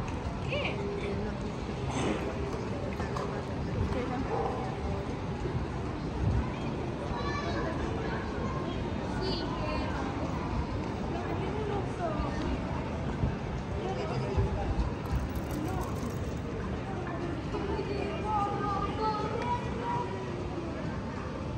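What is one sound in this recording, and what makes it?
A crowd of people chatters nearby on a busy street outdoors.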